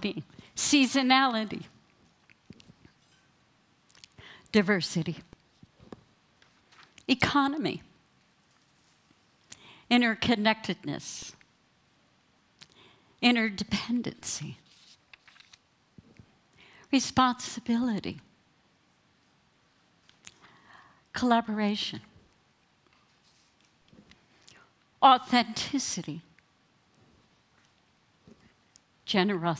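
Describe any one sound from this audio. A woman speaks into a microphone in short phrases with long pauses.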